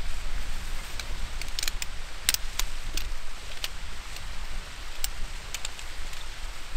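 Tent poles click and snap together.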